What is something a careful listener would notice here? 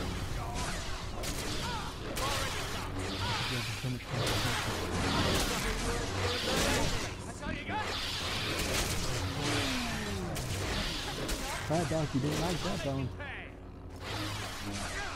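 A magic spell crackles and hisses.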